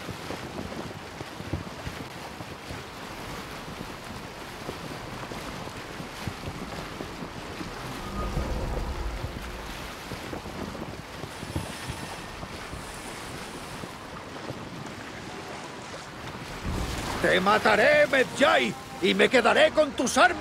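Water splashes and rushes against a sailing boat's hull.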